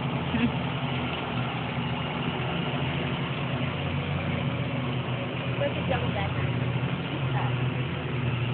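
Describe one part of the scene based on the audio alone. Honeybees buzz in a steady, dense hum close by.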